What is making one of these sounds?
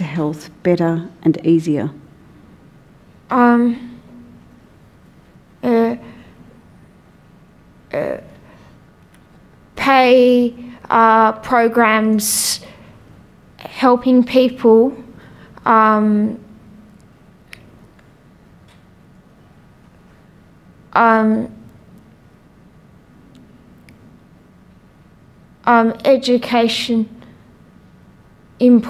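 A young woman speaks haltingly into a microphone, in short bursts with long pauses.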